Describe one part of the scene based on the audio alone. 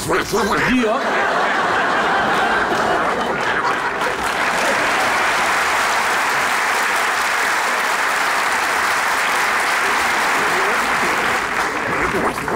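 A large audience laughs and applauds in a big hall.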